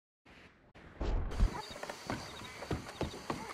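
Boots thud on wooden boards.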